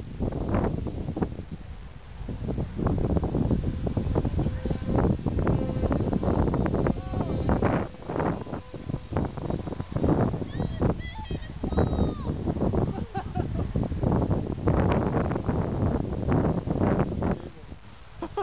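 Wind buffets loudly outdoors.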